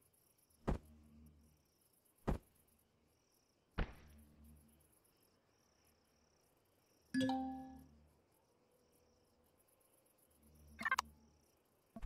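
Short interface clicks and chimes sound now and then.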